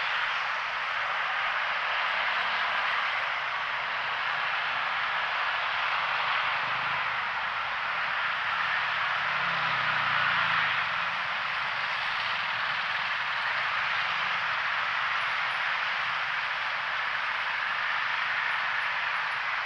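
Motorbike engines rumble steadily in slow, heavy traffic nearby.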